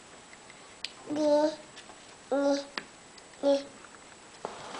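A toddler babbles and squeals nearby.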